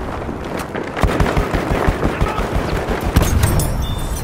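A gun fires rapid bursts of shots close by.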